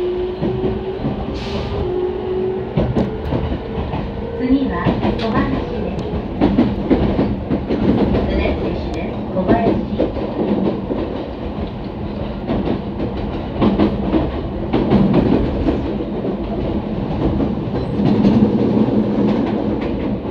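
An electric commuter train's wheels rumble and clatter over the rails, heard from inside.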